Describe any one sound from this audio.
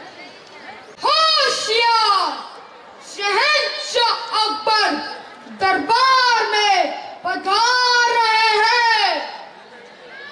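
A boy declaims loudly through a microphone with strong, sung-out phrases.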